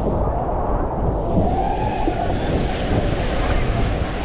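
Water splashes loudly at the bottom of a slide.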